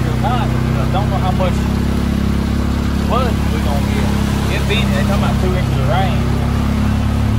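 A man talks calmly up close.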